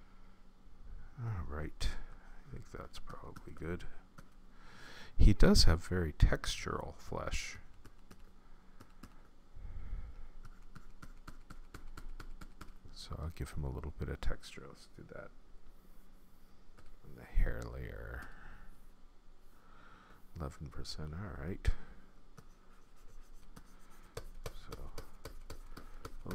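A middle-aged man talks calmly and close to a microphone, with pauses between phrases.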